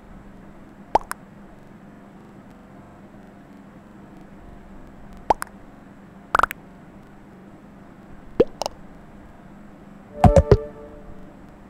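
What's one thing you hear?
Short electronic chat notification blips sound now and then.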